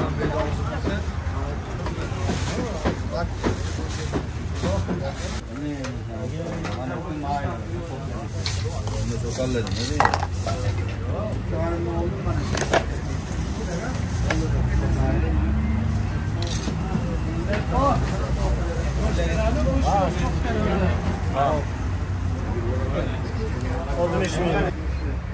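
A metal ladle scrapes and clinks against a large pan.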